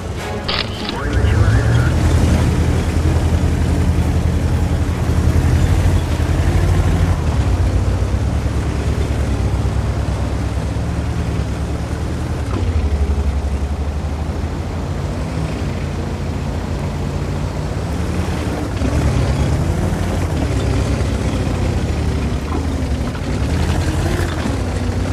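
Tank tracks clatter over the ground.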